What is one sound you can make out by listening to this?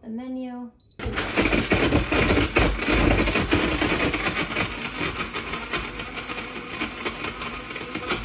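A milk frother whirs and hums steadily.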